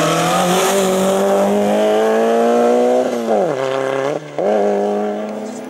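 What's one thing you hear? A rally car engine roars loudly close by, revving up and dropping as the driver shifts gears.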